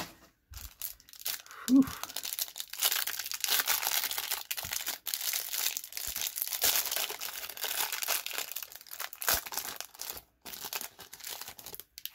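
Crinkly plastic wrapping rustles and crackles as hands tear it open.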